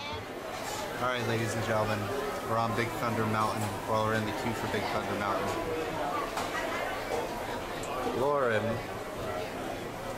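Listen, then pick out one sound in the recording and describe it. A young man talks close up, calmly.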